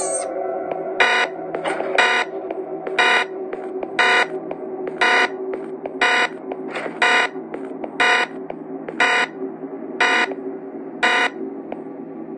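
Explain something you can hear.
A game's countdown timer beeps once every second.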